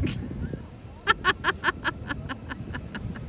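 A young girl laughs in short bursts close by.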